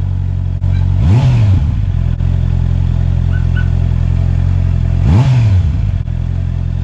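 A motorcycle engine revs sharply, then drops back to idle.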